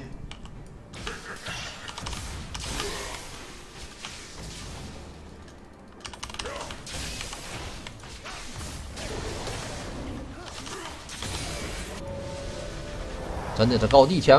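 Game sound effects of magic blasts and hits play softly.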